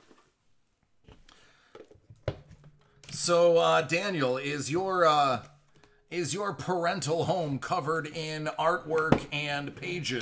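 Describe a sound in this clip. Cardboard boxes knock and slide on a hard surface.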